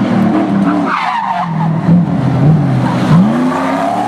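Tyres screech on tarmac as a car slides around a bend.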